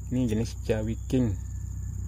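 A knife cuts into a thin plant stem.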